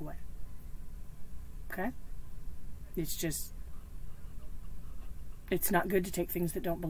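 A woman talks calmly and close by, in short bursts with pauses.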